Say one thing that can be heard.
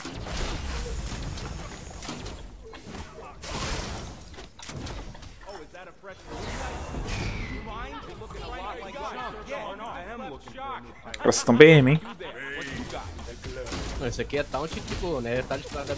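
Magic blasts crackle and thud during a fight.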